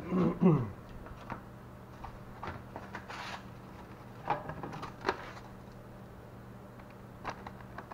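Paper plates tap and rustle as food is handled.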